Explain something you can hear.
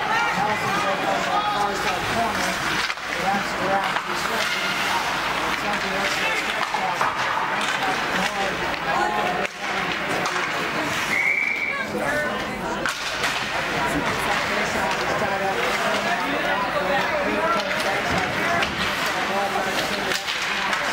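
A crowd of spectators chatters throughout in a large echoing rink.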